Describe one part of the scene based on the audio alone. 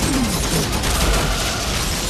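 An electric arc crackles and zaps.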